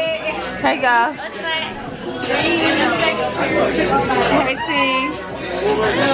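Young women laugh and chatter close by.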